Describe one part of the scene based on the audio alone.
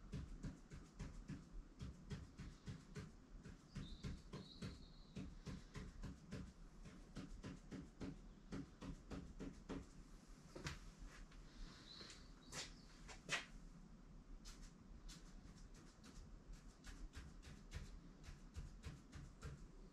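A pen scratches short strokes on a board.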